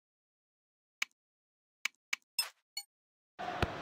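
Short menu clicks sound a few times.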